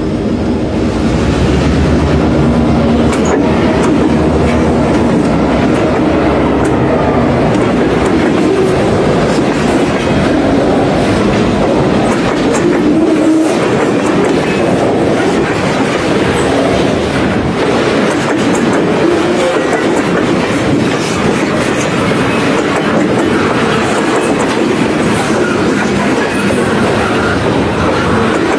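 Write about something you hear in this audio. Steel wheels squeal and screech on the track.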